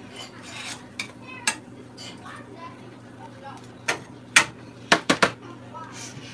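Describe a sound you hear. A metal spatula clinks and scrapes against a frying pan.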